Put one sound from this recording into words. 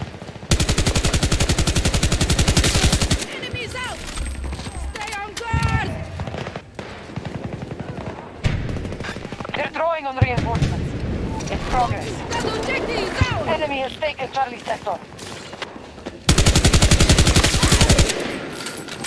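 Rapid automatic gunfire rattles in fast bursts.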